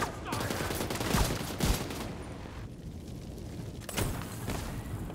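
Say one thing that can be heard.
Gunshots crack in a row.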